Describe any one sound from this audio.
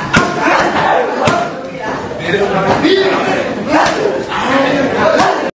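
Kicks thud sharply against padded targets.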